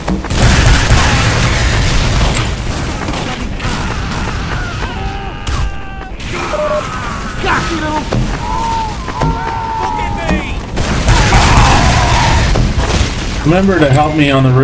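A flamethrower roars in loud, hissing bursts.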